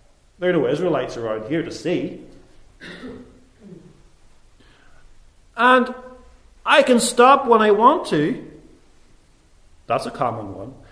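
A middle-aged man speaks calmly and clearly into a microphone, pausing between phrases.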